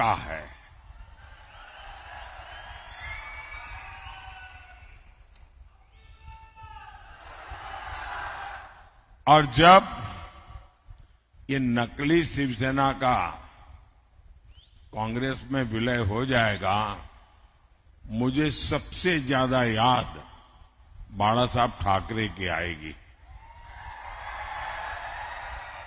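A crowd cheers and chants loudly.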